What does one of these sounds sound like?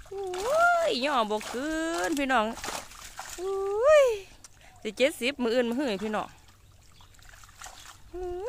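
Water splashes as a net is lifted out of shallow water.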